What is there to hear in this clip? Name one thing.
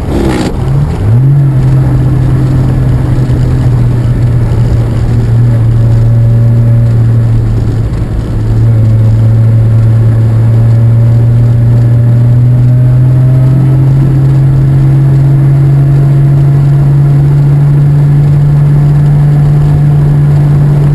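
Wind rushes loudly past the car.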